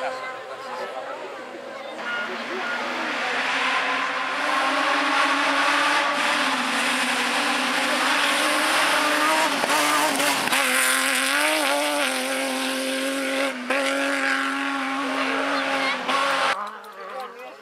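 A rally car engine roars loudly as the car speeds past close by.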